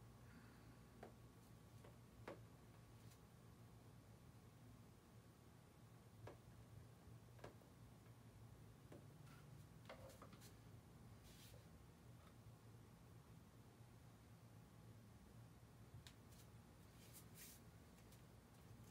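Bare feet pad softly on a hard floor.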